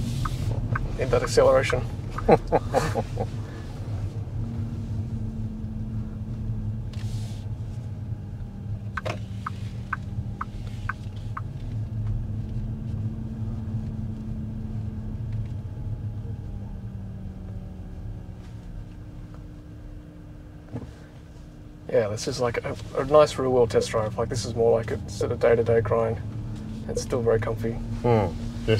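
A car hums steadily with low road noise from inside.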